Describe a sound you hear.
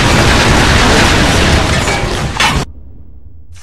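A rifle fires rapid bursts close by.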